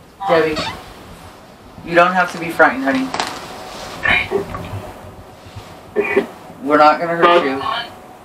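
A woman speaks nearby in a low, conversational voice.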